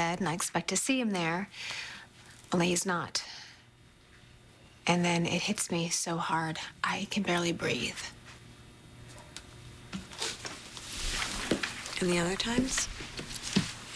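A young woman speaks close by, in a tense, earnest voice.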